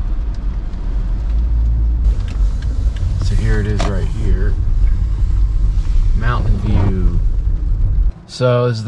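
A car's engine and tyres rumble low and steadily from inside the car.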